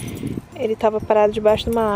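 Keys jingle in a hand.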